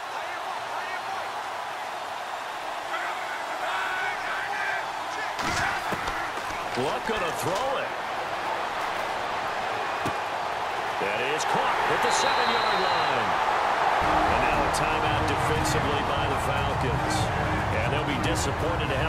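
A stadium crowd roars steadily and swells louder.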